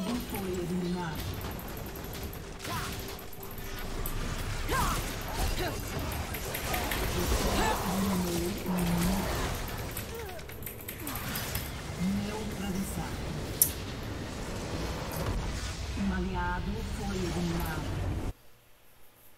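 Fantasy battle sound effects clash, whoosh and burst rapidly.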